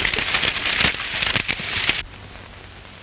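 A horse walks through crackling brush.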